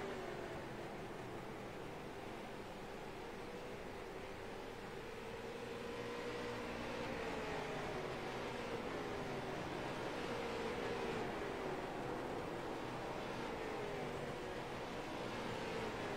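A race car engine idles with a low, droning hum.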